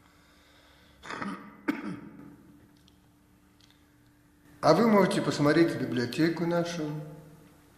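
An elderly man speaks close to a microphone, in short bursts with pauses.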